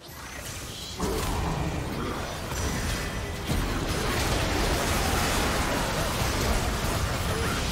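Magic blasts and explosions burst loudly in a game fight.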